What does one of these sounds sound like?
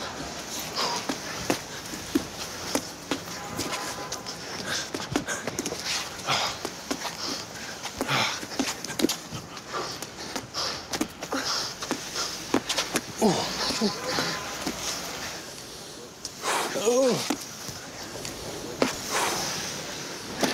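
Sneakers squeak on hard ground.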